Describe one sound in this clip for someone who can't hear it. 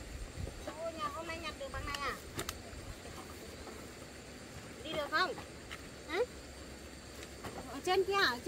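A young woman speaks nearby in a high, lively voice.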